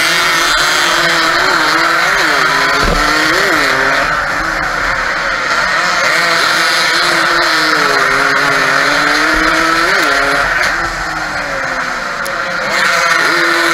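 A motorcycle engine roars loudly up close, revving up and down as it races.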